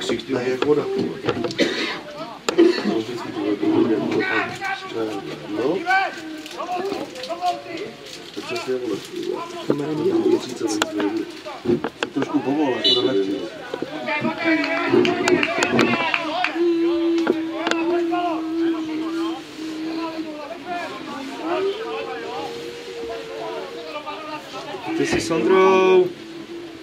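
Men shout to each other across an open outdoor field.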